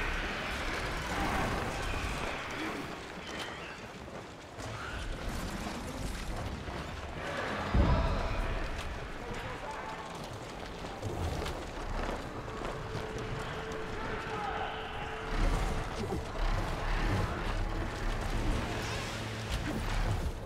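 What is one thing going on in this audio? Large mechanical wings beat with heavy whooshes.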